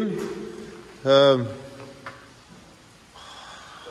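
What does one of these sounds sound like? Footsteps scuff on a hard floor in an empty, echoing space.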